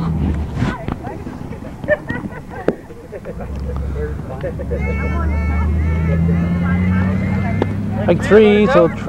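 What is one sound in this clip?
Young players call out across an open field.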